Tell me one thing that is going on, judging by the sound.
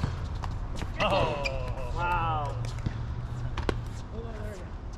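Men call out to each other across an outdoor court.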